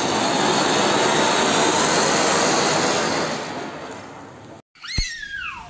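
A firework fountain hisses and roars loudly.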